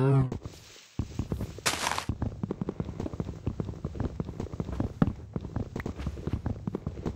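Rapid knocks sound as a wooden block is chopped.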